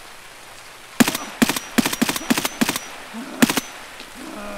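A rifle fires several sharp shots in quick succession.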